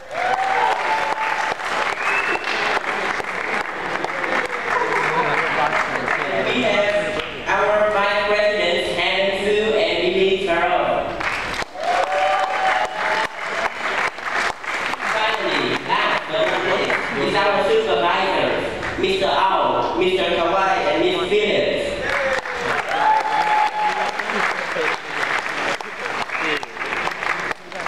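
Young people clap their hands.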